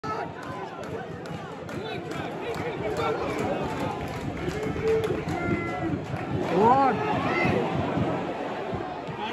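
Nearby men talk loudly in the crowd.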